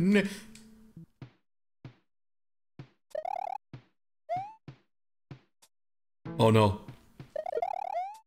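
Short electronic game sound effects chirp and blip.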